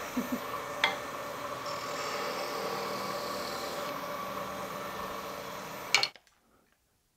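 A wood lathe spins with a steady whirring hum.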